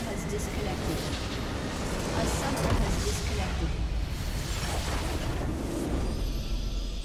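Game spells crackle and explosions boom loudly in a chaotic battle.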